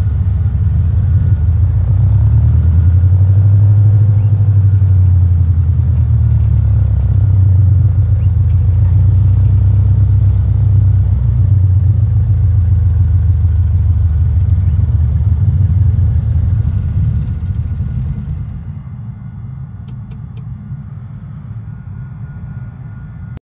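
A small propeller plane's engine drones low and steady, then quietens.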